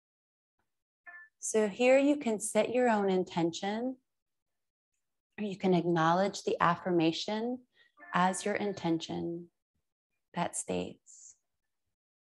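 A woman speaks calmly and slowly through a close microphone, with long pauses.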